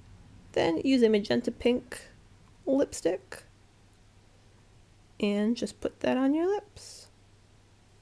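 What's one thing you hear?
A young woman speaks close to a microphone with animation.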